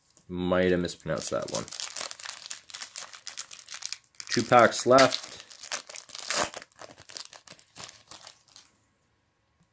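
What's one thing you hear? A foil wrapper crinkles and tears in someone's hands.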